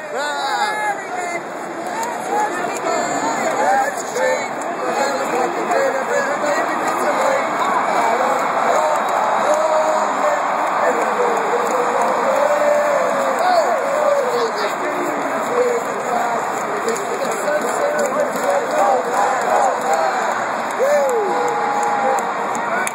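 A huge stadium crowd cheers and roars loudly throughout.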